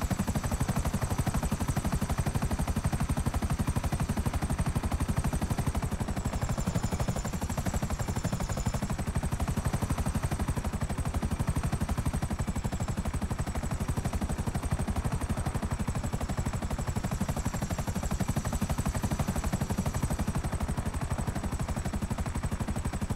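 A helicopter's rotor blades thump rapidly and steadily as it flies close by.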